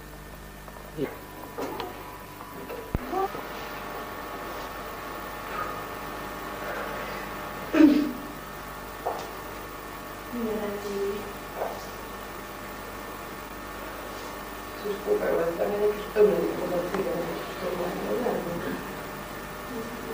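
A young woman speaks with expression.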